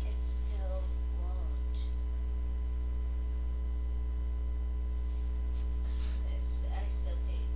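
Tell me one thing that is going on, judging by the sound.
Bedding rustles as someone shifts on a bed.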